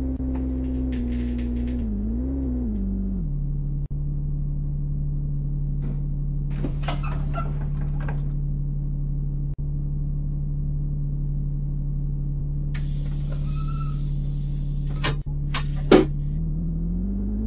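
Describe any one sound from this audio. A bus engine hums steadily, then settles to a lower idle.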